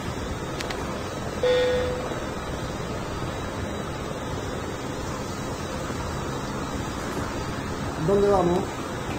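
Helicopter rotors drone steadily.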